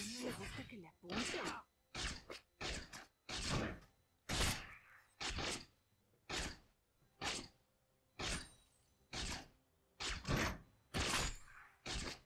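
Spells and weapon strikes hit in short, sharp bursts, one after another.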